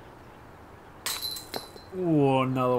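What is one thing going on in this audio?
A disc clanks into metal basket chains.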